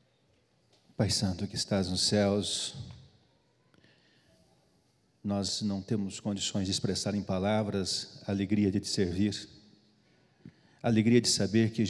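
A man prays aloud with feeling through a microphone in an echoing hall.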